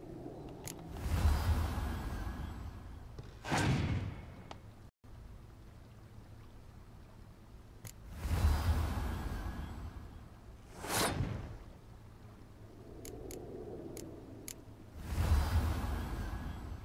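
Game cards land on the board with deep whooshing thuds, several times.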